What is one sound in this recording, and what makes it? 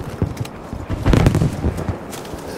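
A loud gunshot booms nearby.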